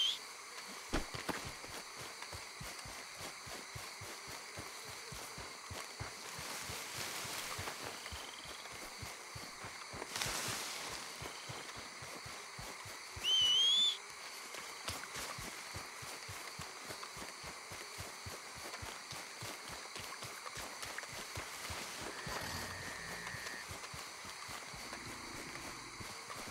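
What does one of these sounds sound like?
Footsteps tread steadily through grass and undergrowth.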